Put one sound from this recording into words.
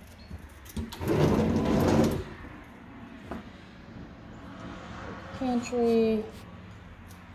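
A sliding closet door rumbles along its track.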